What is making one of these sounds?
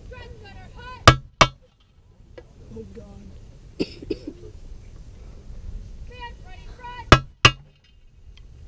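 Drumsticks click sharply a few times.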